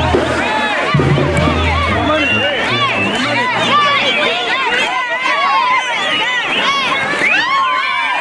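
A large crowd chatters and shouts excitedly outdoors.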